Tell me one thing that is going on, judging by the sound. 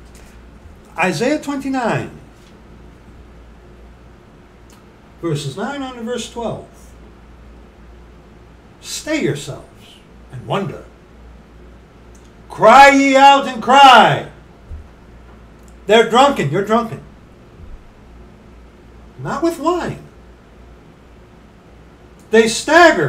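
A middle-aged man speaks close to a microphone in short, lively bursts with pauses between.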